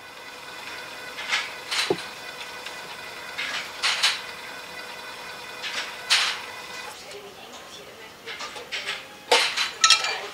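Rubber tubing rubs and knocks against glass.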